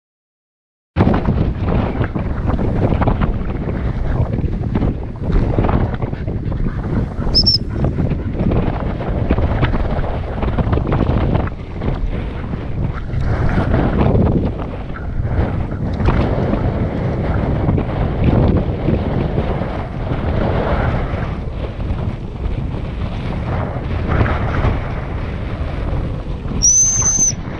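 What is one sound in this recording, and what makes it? Strong wind buffets and rumbles outdoors.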